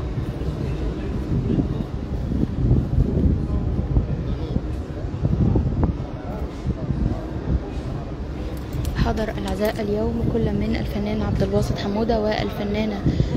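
A crowd of people murmurs and talks nearby.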